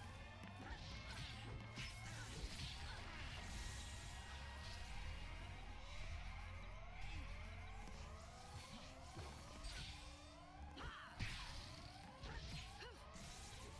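Sword strikes and magic blasts clash in quick bursts.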